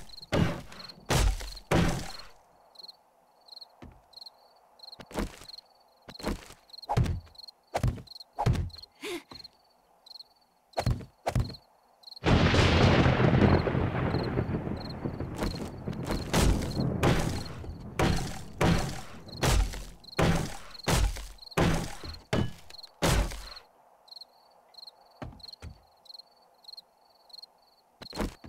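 A hammer knocks on wooden planks.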